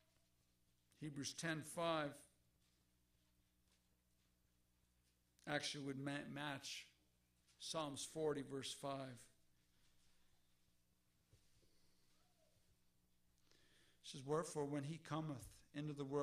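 A man speaks calmly into a microphone in a room with a slight echo, pausing between phrases.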